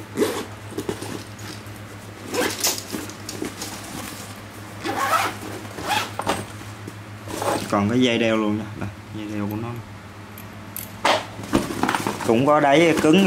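Nylon fabric rustles as a bag is handled.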